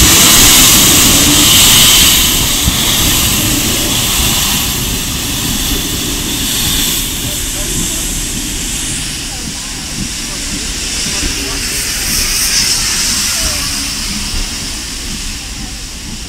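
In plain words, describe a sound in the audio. Train wheels rumble and clatter along the rails.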